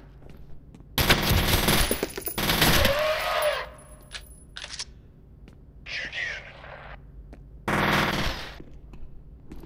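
A submachine gun fires rapid bursts, echoing in a large hall.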